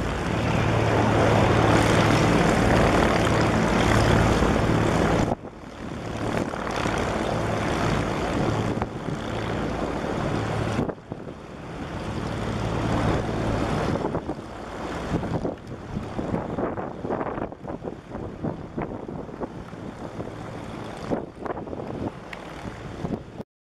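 A twin-engine light helicopter's rotor thuds as it flies away and fades into the distance.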